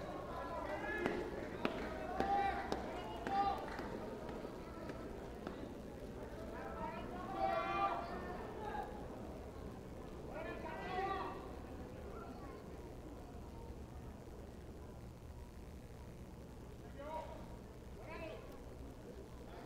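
Men in a crowd call out loudly in a large open hall.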